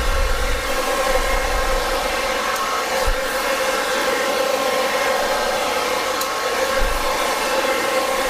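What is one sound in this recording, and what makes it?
A hair dryer blows with a steady whirring roar.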